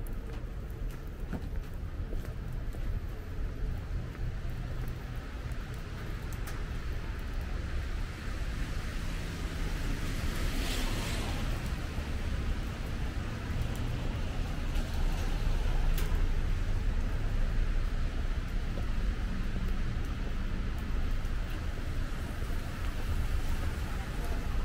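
Rain patters steadily on wet pavement.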